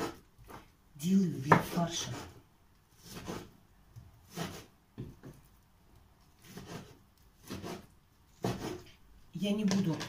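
A knife taps on a cutting board as meat is chopped.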